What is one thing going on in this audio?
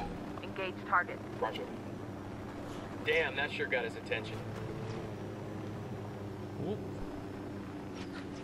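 A helicopter engine hums and its rotor thrums steadily.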